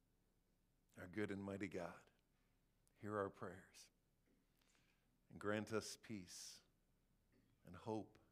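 A man speaks quietly into a microphone, with long pauses.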